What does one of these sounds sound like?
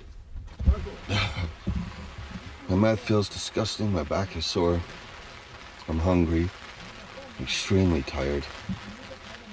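A man speaks slowly and wearily, close by, in short breathless phrases.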